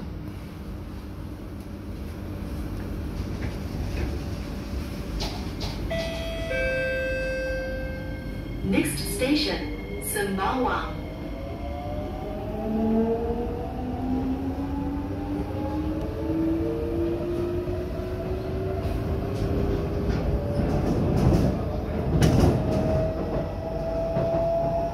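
A train rumbles low and steady.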